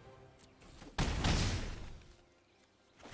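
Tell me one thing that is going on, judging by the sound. A digital card whooshes into place with a magical chime.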